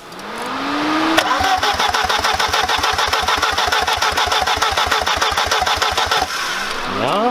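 A car engine idles with a steady rapid chugging.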